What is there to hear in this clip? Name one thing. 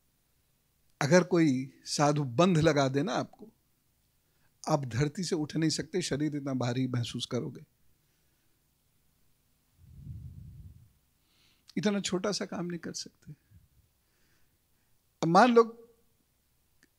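A man speaks into a microphone with animation, in bursts with pauses.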